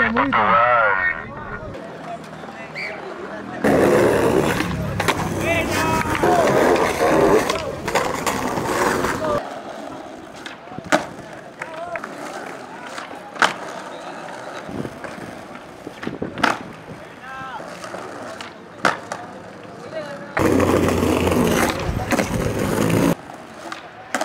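Skateboard wheels roll over smooth paving.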